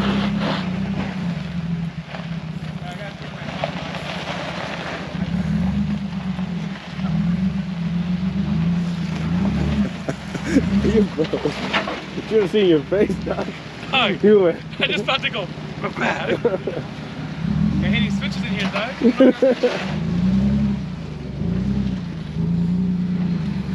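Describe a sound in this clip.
An engine idles and revs unevenly.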